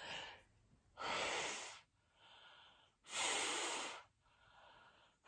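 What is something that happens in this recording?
A woman breathes out heavily with a hiss.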